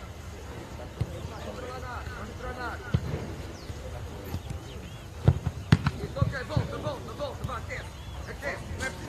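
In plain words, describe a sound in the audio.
A football thuds as it is kicked on an open field.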